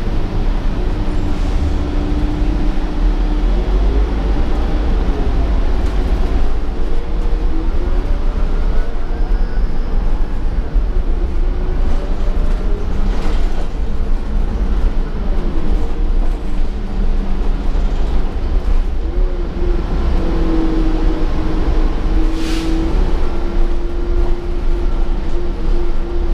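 The bus body rattles and creaks over the road.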